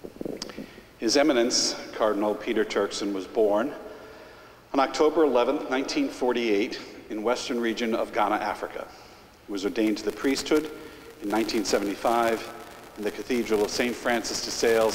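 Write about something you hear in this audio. An older man speaks calmly into a microphone, heard through loudspeakers in a large echoing hall.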